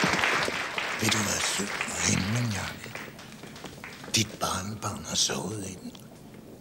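An older woman speaks quietly nearby.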